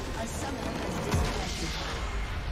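A deep explosion booms.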